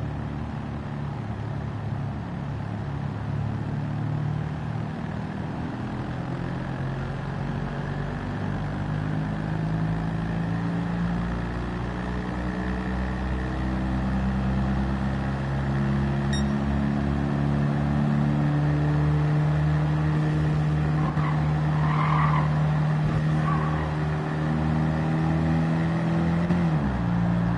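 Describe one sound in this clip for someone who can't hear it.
A small car engine buzzes and revs steadily higher, then drops as it changes gear.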